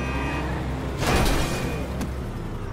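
A car brakes and skids to a stop.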